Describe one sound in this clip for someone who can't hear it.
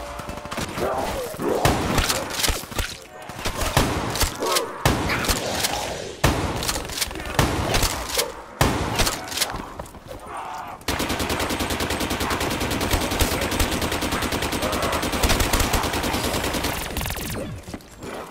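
A gun fires shots in quick bursts, then a long rapid stream of fire.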